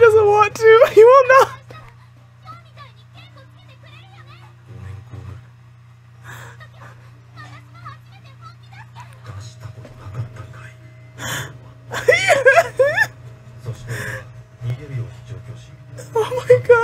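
A young woman talks and exclaims excitedly close to a microphone.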